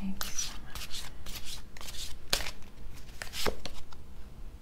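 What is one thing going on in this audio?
Cards riffle and snap as they are shuffled close by.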